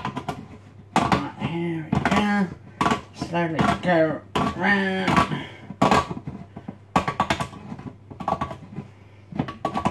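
Objects clatter and knock on a counter.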